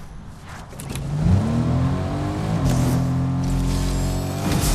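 A vehicle engine starts and revs up.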